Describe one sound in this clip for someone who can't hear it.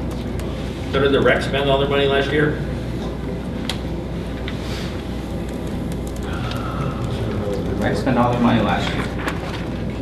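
A man speaks calmly, heard from across a room.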